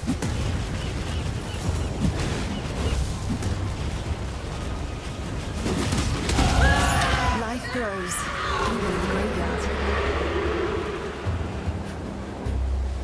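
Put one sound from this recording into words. Fiery blasts rumble and crackle.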